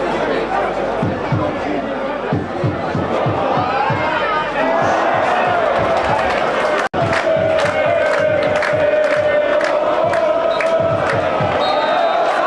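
Fans clap their hands in rhythm.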